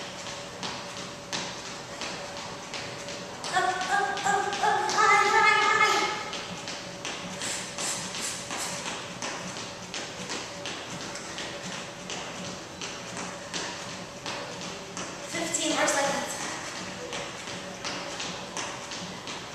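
Feet thump rhythmically on a wooden floor.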